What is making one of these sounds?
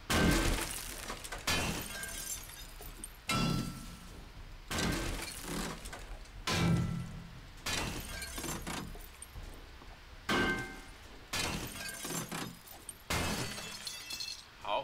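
A heavy wrench strikes metal again and again with ringing clangs.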